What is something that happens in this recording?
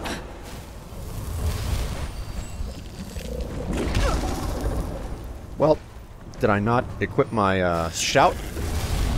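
A creature roars and growls.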